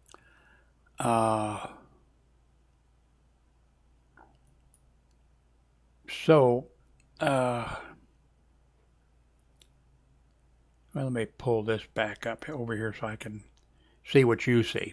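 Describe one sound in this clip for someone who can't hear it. A man talks calmly into a nearby microphone, in short bursts with pauses.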